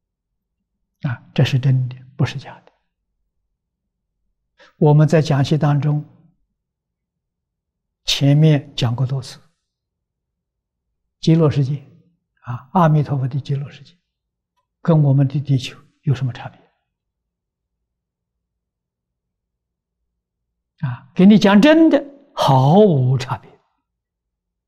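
An elderly man speaks calmly into a microphone, in short phrases with pauses.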